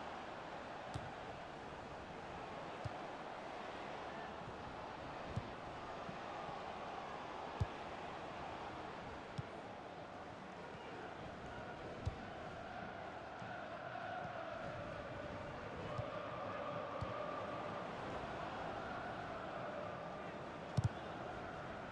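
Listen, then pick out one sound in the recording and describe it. A football is kicked with short dull thuds.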